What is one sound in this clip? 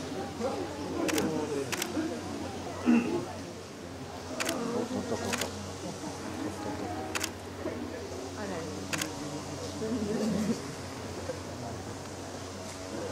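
A deer licks its newborn fawn.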